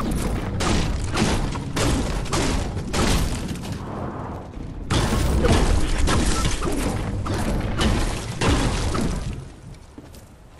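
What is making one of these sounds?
A pickaxe strikes a wall with rapid hits.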